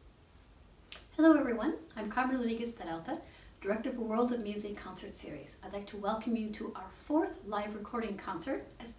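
A middle-aged woman speaks calmly close to the microphone.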